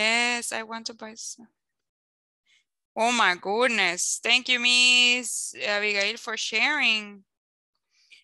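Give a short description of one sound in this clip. A woman speaks clearly and with animation over an online call.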